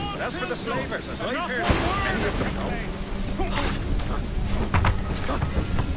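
Blades clash and bodies thud in a brief fight.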